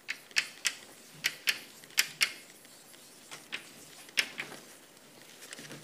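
Chalk taps and scratches sharply on a blackboard.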